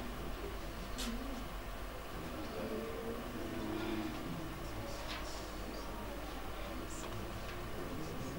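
A man speaks through a microphone and loudspeakers, calmly addressing an audience.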